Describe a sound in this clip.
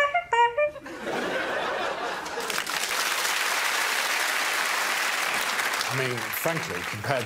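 A group of people applauds.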